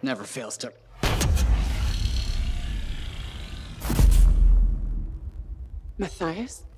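A magical shimmering whoosh swells and roars.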